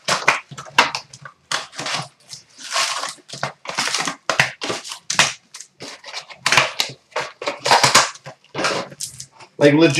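A foil card pack crinkles and tears as it is opened.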